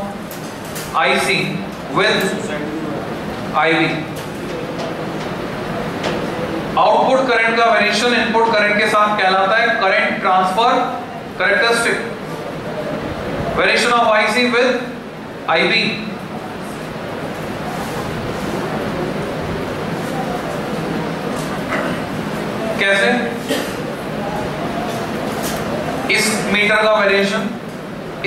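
A man lectures in a calm, clear voice in a room with some echo.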